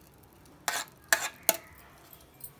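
Thick porridge plops from a pot into a glass bowl.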